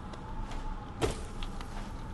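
A short whoosh sweeps past.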